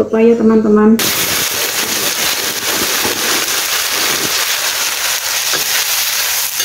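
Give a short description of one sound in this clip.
Food sizzles and hisses in a hot wok.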